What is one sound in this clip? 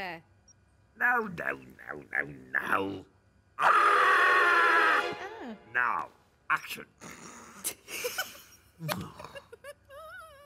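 A man mumbles and grunts in short bursts.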